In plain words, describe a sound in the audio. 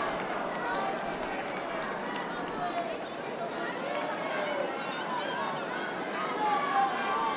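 A large crowd cheers and chatters loudly outdoors.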